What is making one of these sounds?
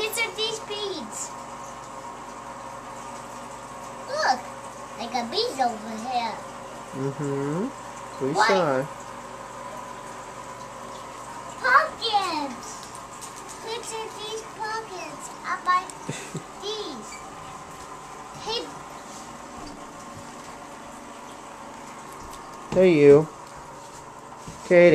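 A young girl talks excitedly nearby.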